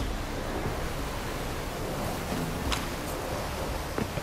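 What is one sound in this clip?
Footsteps crunch on grass and rock.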